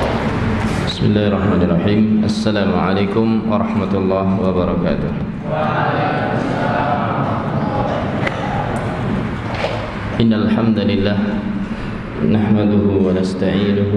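A man speaks steadily through a microphone in an echoing room.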